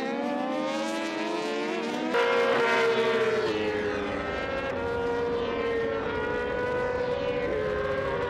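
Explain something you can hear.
Racing motorcycle engines whine at high revs, shifting pitch as the bikes pass.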